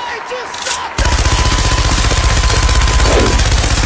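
A machine gun fires in a rapid, continuous burst close by.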